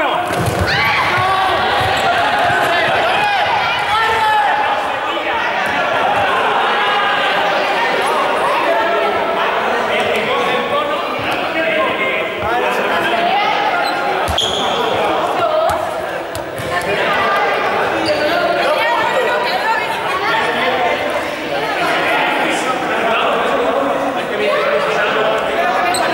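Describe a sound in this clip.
A crowd of young men and women chatter and call out in a large echoing hall.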